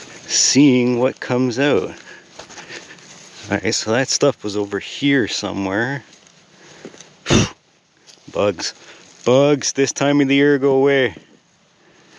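A gloved hand presses and pats loose soil with a soft rustle.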